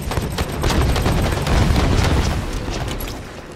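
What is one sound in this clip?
Gunfire rattles rapidly and loudly at close range.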